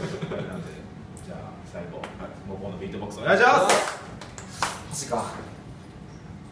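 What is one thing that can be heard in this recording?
Young men talk and laugh close by.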